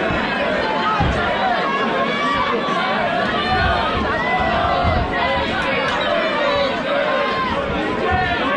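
Boxing gloves thud against bodies in a quick flurry.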